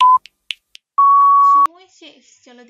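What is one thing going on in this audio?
A countdown timer sounds a long beep at the end.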